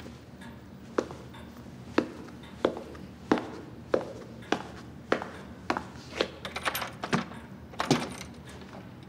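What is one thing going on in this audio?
Footsteps knock slowly and evenly on a hard floor.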